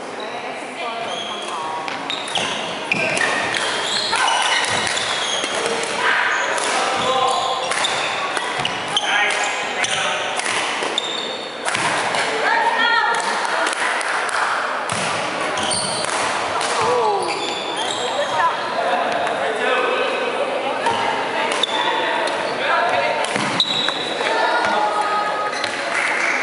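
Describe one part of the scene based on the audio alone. Players call out to each other across the hall.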